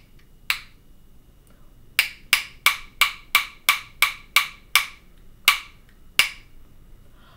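A woman taps two tubes together in a quick, even rhythm.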